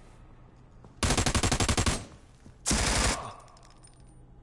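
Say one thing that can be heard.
Loud gunfire bursts rapidly in a video game.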